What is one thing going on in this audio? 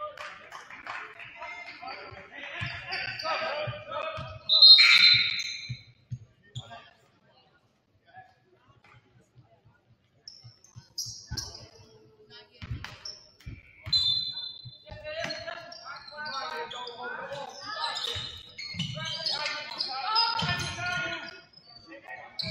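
A crowd of spectators calls out and chatters in a large echoing gym.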